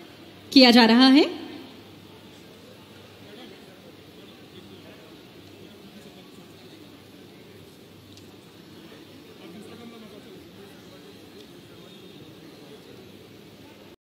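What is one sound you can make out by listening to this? A crowd murmurs faintly in the background.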